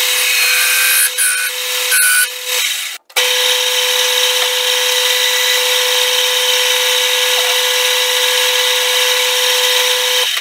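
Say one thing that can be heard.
A lathe motor whirs with a steady high hum as the chuck spins.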